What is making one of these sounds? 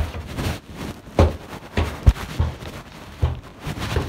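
Clothing brushes and rubs against the microphone.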